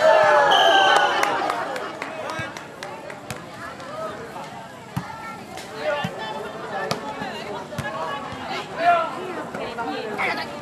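A crowd of young people chatters and calls out in the distance.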